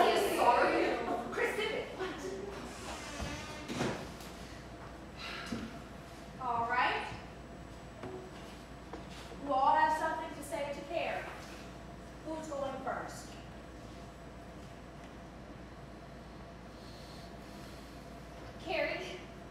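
Young women speak and call out on a stage, heard from the audience in a hall.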